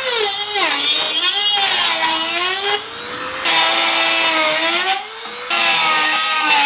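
An angle grinder whines loudly as it cuts through metal.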